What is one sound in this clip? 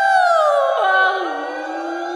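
A young woman sings a long, held note close to a microphone, then her voice slides down.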